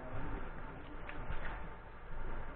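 A paper book page rustles as it is turned.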